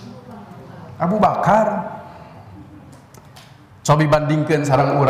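A man speaks with emphasis into a microphone in a room with a slight echo.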